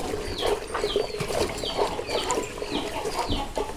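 A stick stirs and sloshes liquid in a bucket.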